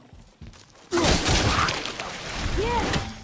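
Shards and debris clatter and scatter around.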